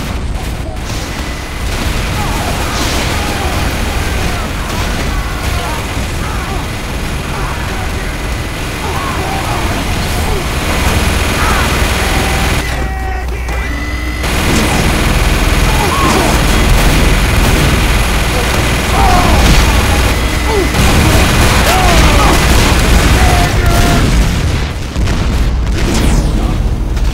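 A flamethrower roars steadily.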